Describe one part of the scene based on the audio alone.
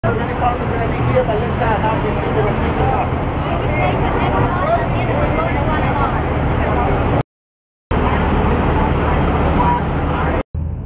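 A crowd of men and women chatter and call out close by.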